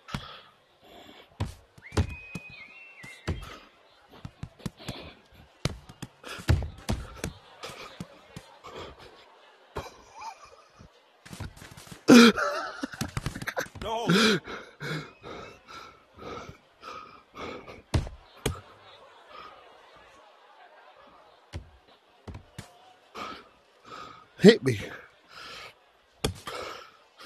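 Punches thud against a body in quick, uneven blows.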